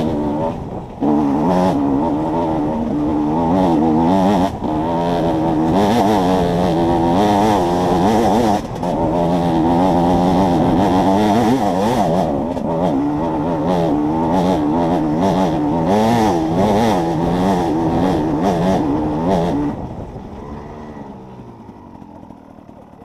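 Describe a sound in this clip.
A dirt bike engine roars close by, revving up and down hard, then fades.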